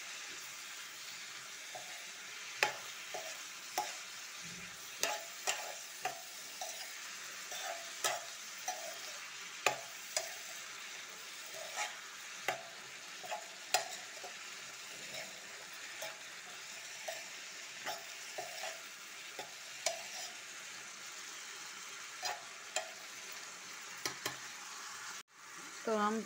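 Vegetables sizzle steadily in a hot pan.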